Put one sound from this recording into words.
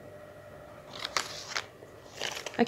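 A plastic packet crinkles as a hand handles it.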